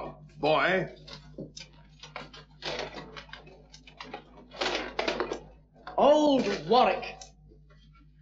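A man speaks loudly and forcefully.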